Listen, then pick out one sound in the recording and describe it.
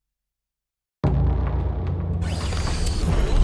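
Electronic game sounds of units and weapons play loudly.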